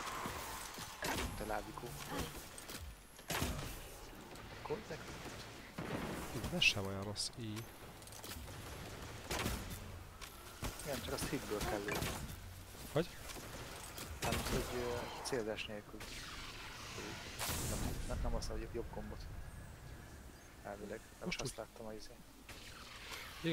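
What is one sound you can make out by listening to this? Game weapons fire in sharp bursts.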